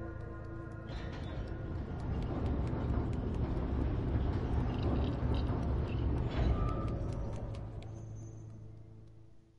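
Light footsteps patter across a hard floor in a large echoing space.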